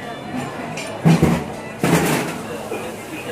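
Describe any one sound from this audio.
Dishes clink on a counter.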